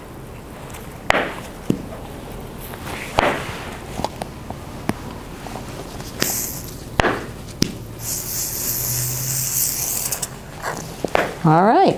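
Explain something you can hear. Hair rollers click and rustle under gloved hands.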